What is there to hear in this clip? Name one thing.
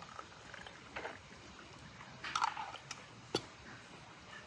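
Glass clinks against glass.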